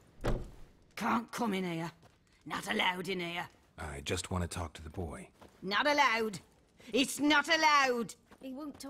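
An elderly woman speaks sternly and close by.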